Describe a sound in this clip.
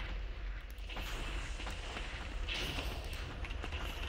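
Fireworks burst and crackle.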